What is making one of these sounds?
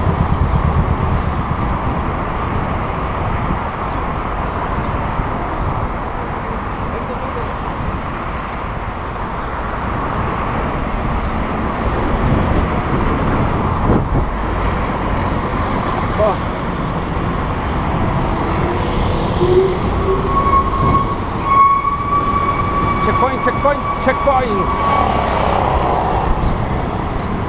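Wind rushes loudly past a moving cyclist.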